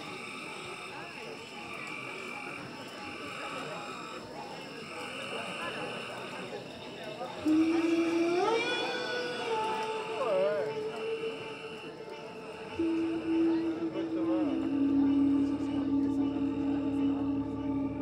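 A man sings wordless sounds into a microphone, amplified through loudspeakers.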